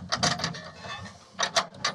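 A door latch clicks and rattles.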